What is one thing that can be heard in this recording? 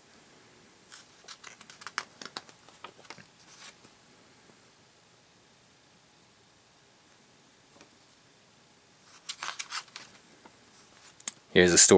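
Paper pages rustle as a booklet's pages are turned.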